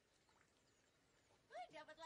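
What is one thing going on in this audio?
A fish splashes in water.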